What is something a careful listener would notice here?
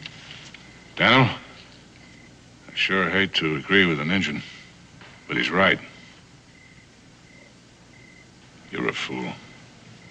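A man speaks calmly and gruffly nearby, in short phrases.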